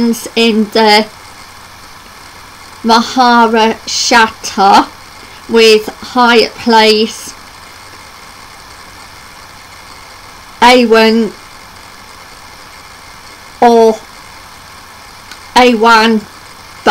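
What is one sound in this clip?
A young woman speaks calmly in short phrases close to a microphone, with long pauses between them.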